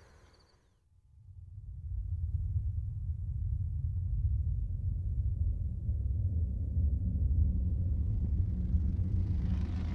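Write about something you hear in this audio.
A car rumbles low and steady as it drives along a road.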